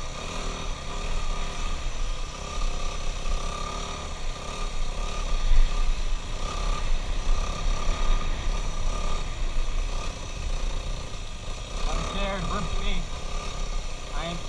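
A dirt bike engine buzzes and revs up close.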